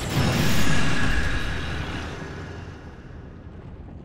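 A loud magical blast bursts and slowly fades.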